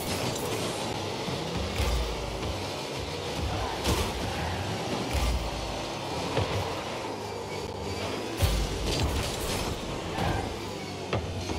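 A car engine hums and roars steadily.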